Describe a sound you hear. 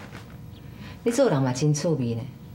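A woman speaks in a calm, teasing voice.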